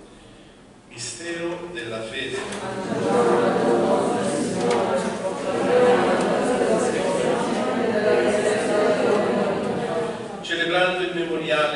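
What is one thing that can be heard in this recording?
A man speaks or chants through a microphone, echoing in a large hall.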